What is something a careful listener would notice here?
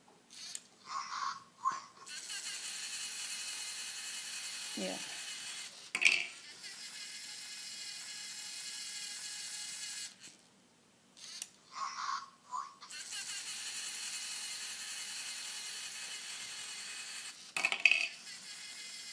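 A toy robot's arm clicks and clatters against plastic parts.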